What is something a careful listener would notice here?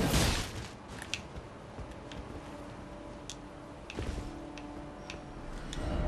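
A sword strikes with sharp metallic clangs.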